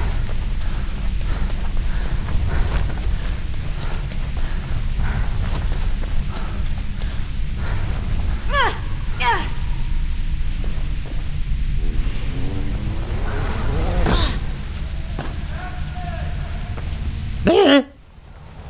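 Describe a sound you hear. Footsteps run quickly on hard concrete.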